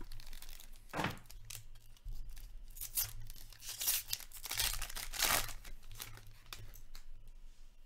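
A plastic wrapper crinkles and tears as it is ripped open.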